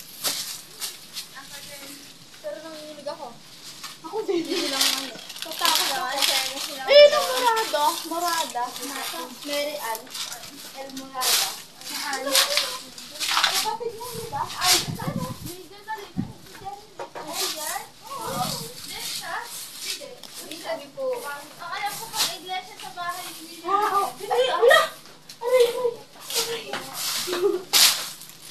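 Several young women chatter and laugh nearby outdoors.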